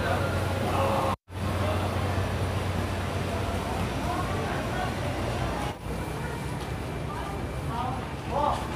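Men and women chatter and call out nearby in a bustling crowd.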